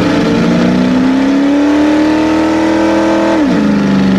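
Tyres squeal as they spin on concrete.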